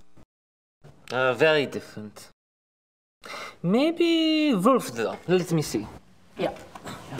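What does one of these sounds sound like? Another man answers in a calm voice.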